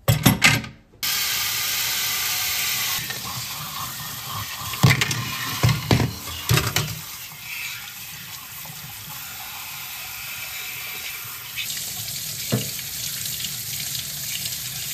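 Water runs from a tap and splashes into a metal sink.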